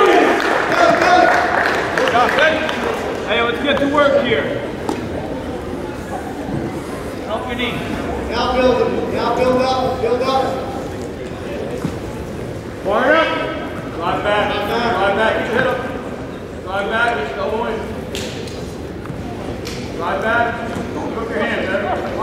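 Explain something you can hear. Men in the stands shout encouragement loudly.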